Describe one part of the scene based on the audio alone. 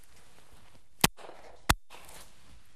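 A shotgun fires two loud shots in quick succession.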